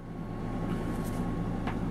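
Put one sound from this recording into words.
A thin metal plate scrapes lightly on a hard surface.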